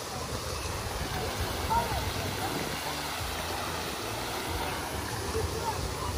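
A fountain splashes and gurgles nearby.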